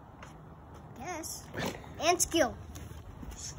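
A young boy speaks cheerfully close by.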